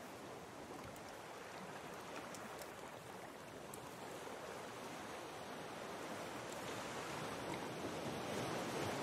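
Ocean waves wash and rush steadily, growing slightly louder.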